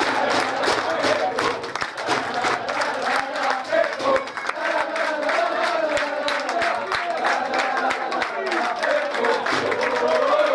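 A group of people clap their hands rapidly.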